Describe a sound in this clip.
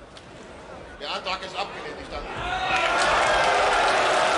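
A crowd murmurs and then roars.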